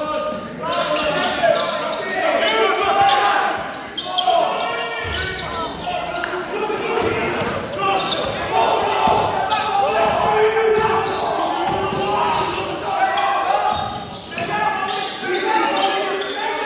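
Sneakers squeak on a hard court in a large echoing hall.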